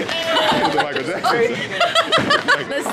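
A teenage girl laughs loudly close by.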